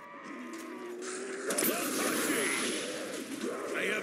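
A ray gun fires with a loud electric zap.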